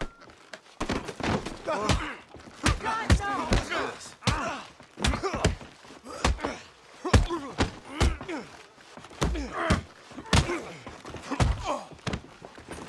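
Two men grunt and shout as they fight.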